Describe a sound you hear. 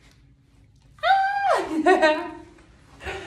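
Young women squeal and laugh close by.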